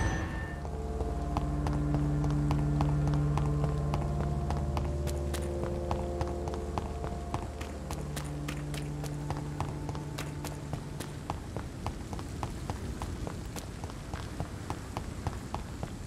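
Footsteps patter quickly on wet cobblestones.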